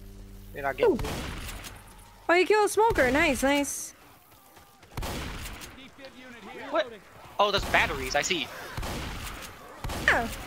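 Shotgun blasts boom sharply, one after another.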